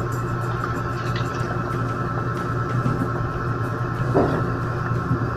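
Soup bubbles and simmers in a pot.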